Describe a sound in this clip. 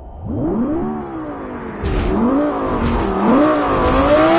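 A sports car engine revs up and down sharply.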